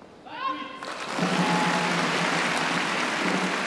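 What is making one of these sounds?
A large crowd applauds and cheers.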